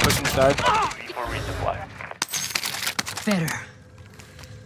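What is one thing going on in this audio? Gunfire rings out in quick bursts.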